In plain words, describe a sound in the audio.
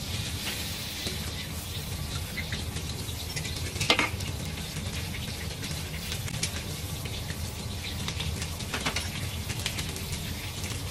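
Hot oil sizzles and crackles steadily in a wok.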